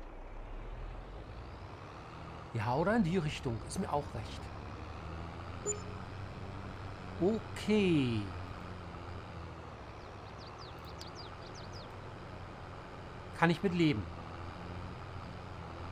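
A tractor engine hums steadily as the tractor drives along.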